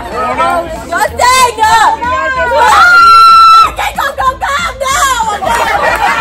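A woman laughs and shrieks excitedly close by.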